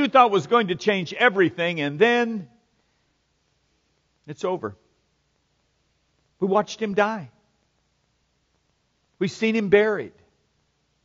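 A middle-aged man speaks with animation into a microphone, with pauses between phrases.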